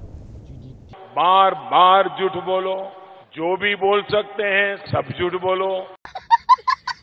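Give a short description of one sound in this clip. An older man speaks forcefully into a microphone.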